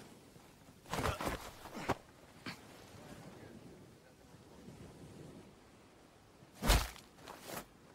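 A heavy thud of a scuffle lands.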